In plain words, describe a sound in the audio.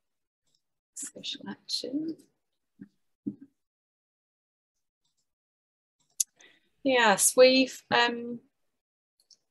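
A woman speaks calmly through an online call microphone, in short bursts.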